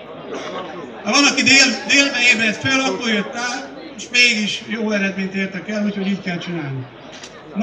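A man speaks loudly into a microphone over a loudspeaker, outdoors.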